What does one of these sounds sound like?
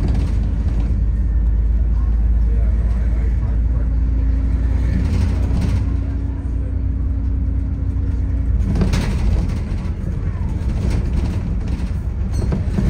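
A bus engine rumbles steadily while the bus drives along a road.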